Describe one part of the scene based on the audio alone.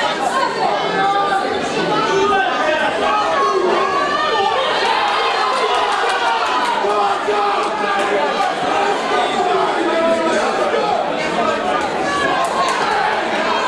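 A crowd of men and women shouts and cheers in an echoing hall.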